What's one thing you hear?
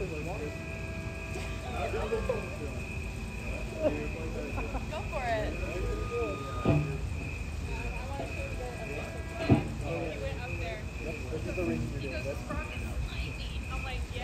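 An electric guitar plays a few notes.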